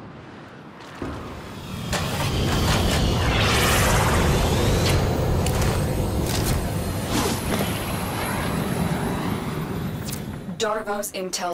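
A spacecraft engine roars loudly as it flies past.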